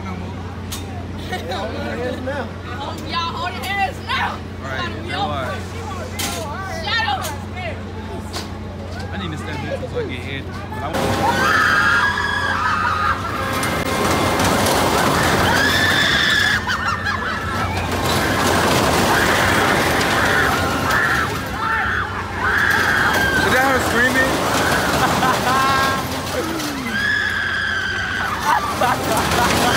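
A fairground ride whirs and rattles as it swings.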